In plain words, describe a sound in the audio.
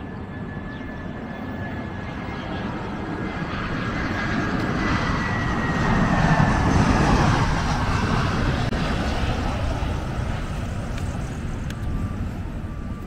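A jet airliner roars low overhead, growing louder and then fading away.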